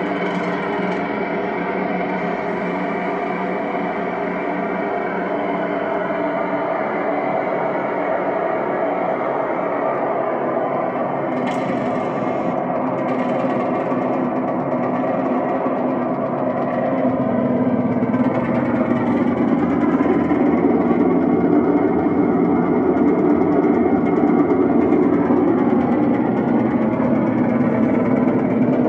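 Electronic synthesizer music plays with steady drones and shifting tones, growing louder toward the end.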